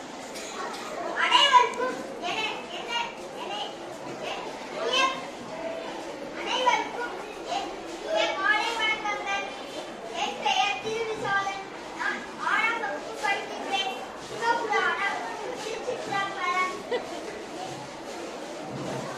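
A young girl speaks steadily through a microphone and loudspeaker.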